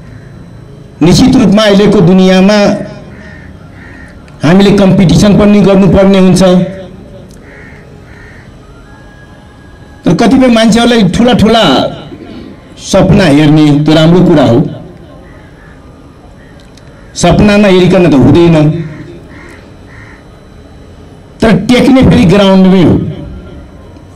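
A man speaks forcefully into a microphone through loudspeakers, in bursts with pauses.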